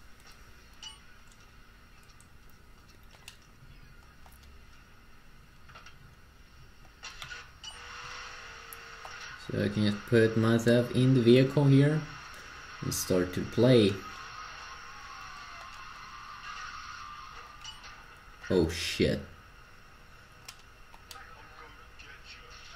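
Buttons on a game controller click softly.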